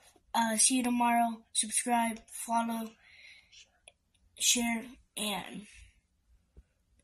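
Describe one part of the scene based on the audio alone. A young boy talks excitedly close to the microphone.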